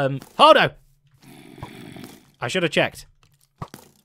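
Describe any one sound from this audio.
A zombie groans low and hoarsely.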